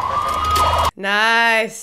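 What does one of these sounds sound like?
A young woman speaks up close.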